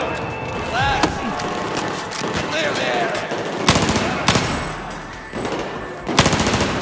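Gunfire bursts sharply and loudly in short bursts.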